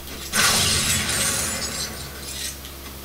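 A video game explosion bursts loudly from a television.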